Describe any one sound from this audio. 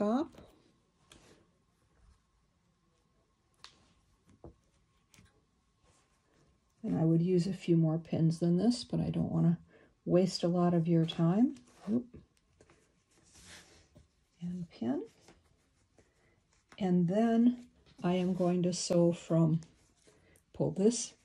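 Fabric rustles softly as it is handled and folded.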